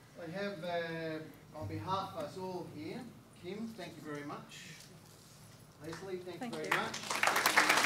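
A man speaks calmly through a microphone to an audience.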